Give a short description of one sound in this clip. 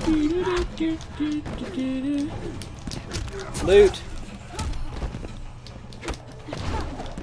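Punches and kicks land with sharp, heavy thuds.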